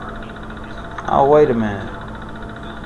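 An old computer terminal gives a short warbling electronic tone.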